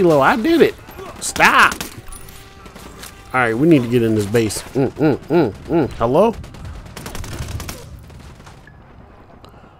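A rifle fires sharp shots in short bursts.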